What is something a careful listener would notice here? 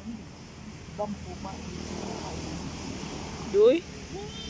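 A child's voice calls out nearby.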